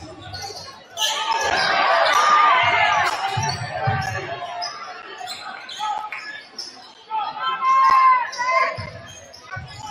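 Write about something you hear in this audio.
A large crowd cheers and shouts in an echoing gym.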